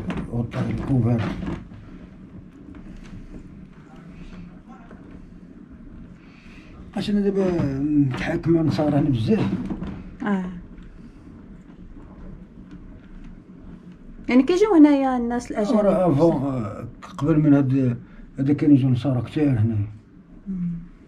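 An elderly man talks calmly and close by, in short bursts.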